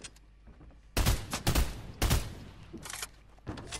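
Gunshots crack in short bursts in a video game.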